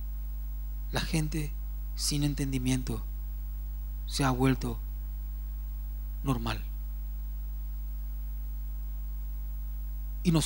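A man speaks into a microphone in short bursts with pauses, heard over loudspeakers in a large room.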